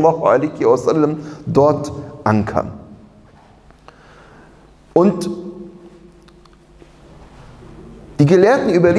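A man chants in a melodic voice through a microphone, with pauses between phrases, in a reverberant room.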